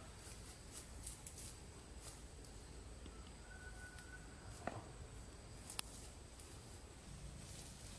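Footsteps swish through grass outdoors.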